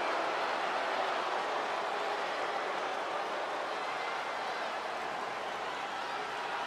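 A large crowd roars and cheers steadily in a big arena.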